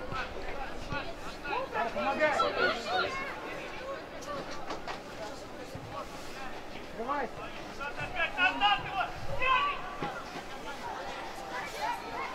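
Young male players shout to each other outdoors across an open field.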